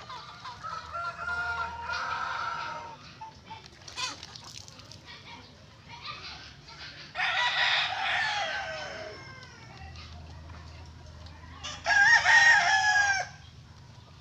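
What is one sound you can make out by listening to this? A rooster crows nearby.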